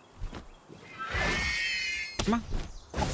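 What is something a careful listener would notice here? A large bird lets out a shrill, warbling cry.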